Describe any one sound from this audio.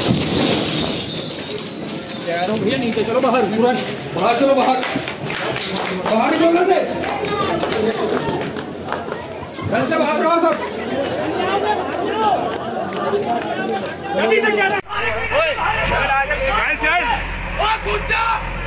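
Men shout in alarm nearby.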